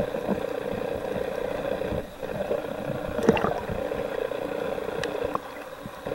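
Water hisses and crackles in a muffled, underwater hum.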